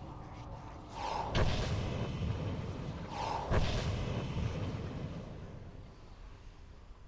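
Magic blasts whoosh and rumble.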